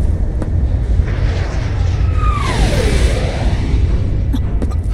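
An airship roars past with a sweeping whoosh.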